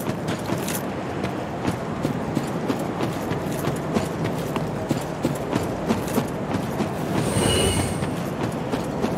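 Armoured footsteps crunch steadily over rocky ground.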